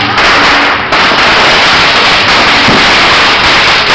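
A firework bursts with a bang overhead.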